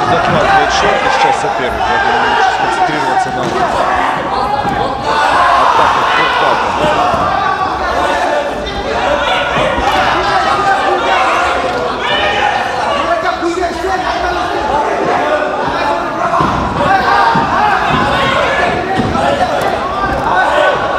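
A crowd cheers and shouts loudly in a large hall.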